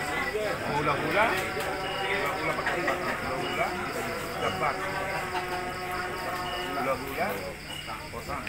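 A woman sings through loudspeakers.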